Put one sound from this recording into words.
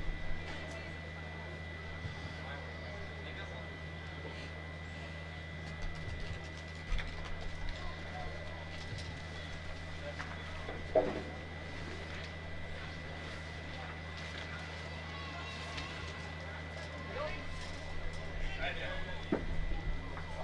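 Metal boules land and knock on a gravel court.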